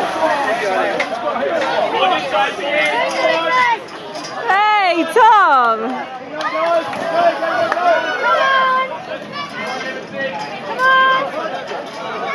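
A crowd of people shouts and cheers outdoors.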